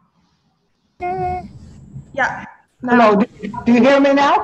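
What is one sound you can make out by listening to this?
An elderly woman speaks over an online call.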